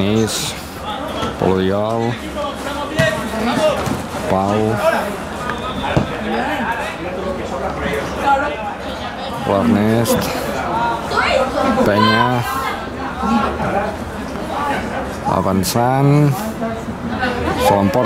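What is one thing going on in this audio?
Young men shout to each other across an open sports field.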